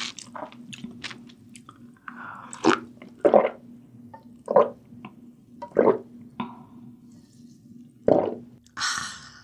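A young woman slurps and gulps broth close to a microphone.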